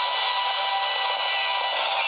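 Coins clink and jingle as they pour out in a quick stream.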